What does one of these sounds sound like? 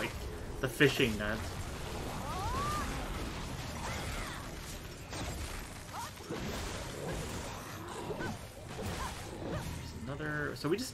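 Game sword strikes clash and thud during a fight.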